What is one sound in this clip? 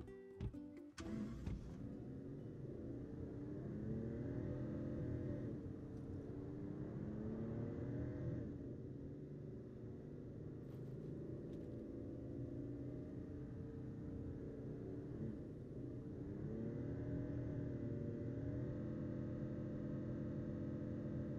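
A car engine hums steadily as a car drives along, its pitch rising and falling.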